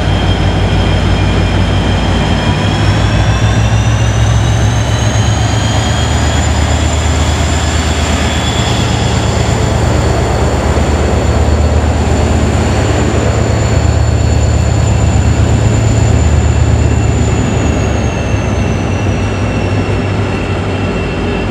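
An electric train's motors whine, rising in pitch and later falling.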